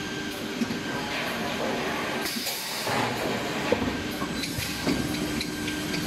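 Industrial rollers hum and rumble steadily as a sheet feeds through a machine.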